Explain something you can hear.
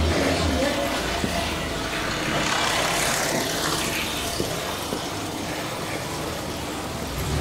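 Footsteps walk along a quiet street outdoors.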